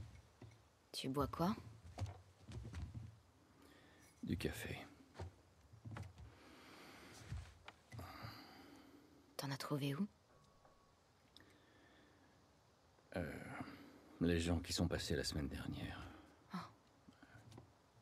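A young woman asks questions in a calm, quiet voice.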